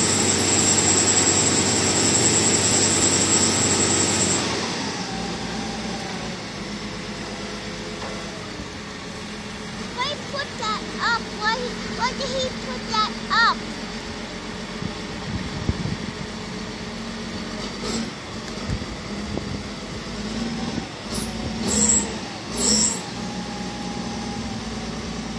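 A heavy snow plow engine rumbles steadily nearby.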